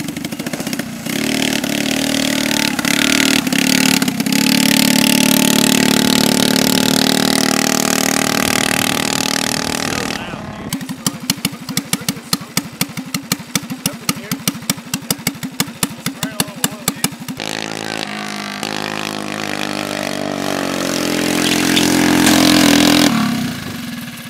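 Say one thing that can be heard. A go-kart engine roars loudly as it drives off.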